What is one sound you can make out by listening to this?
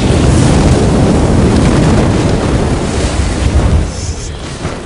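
A deep rumbling roar fills the background.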